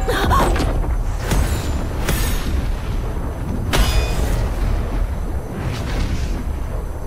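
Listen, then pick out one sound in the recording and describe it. A deep low rumble drones throughout.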